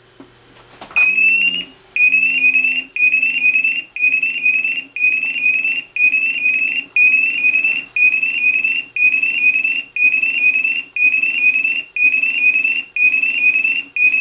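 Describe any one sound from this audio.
A gas detector alarm beeps rapidly and repeatedly.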